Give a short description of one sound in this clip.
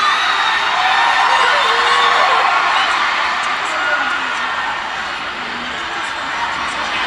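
A large crowd cheers and screams in an echoing hall.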